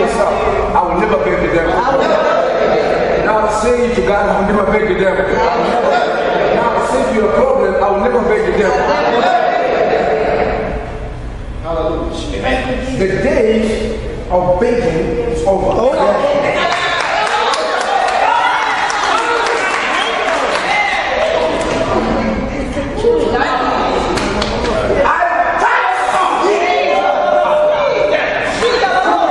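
A man speaks loudly and with fervour.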